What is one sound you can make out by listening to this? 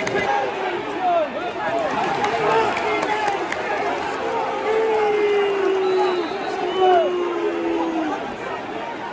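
A man nearby shouts.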